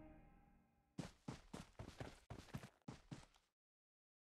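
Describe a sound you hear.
Footsteps rustle softly through grass.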